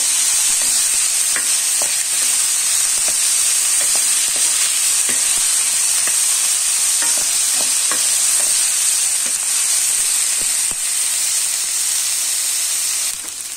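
A wooden spoon scrapes and taps against a metal pan.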